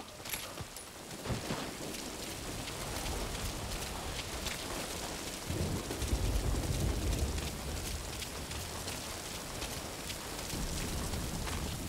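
Footsteps run quickly over dirt.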